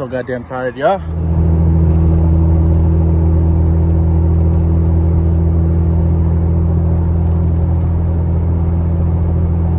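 A car engine hums steadily at a constant pitch while driving.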